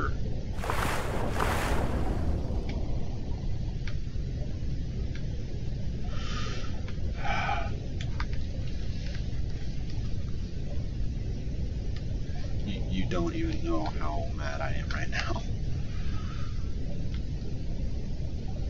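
Deep underwater water rumbles steadily.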